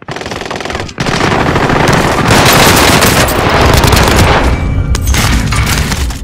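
A gun fires rapid bursts, loud and close.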